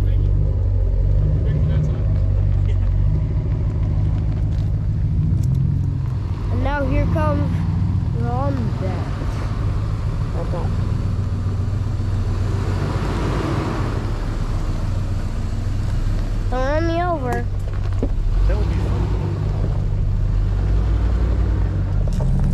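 A vehicle engine rumbles steadily nearby.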